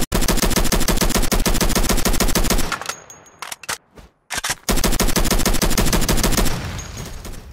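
A rifle fires rapidly in long bursts.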